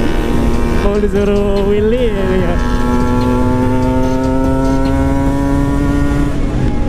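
A motorcycle engine hums steadily, its pitch shifting as the rider changes speed.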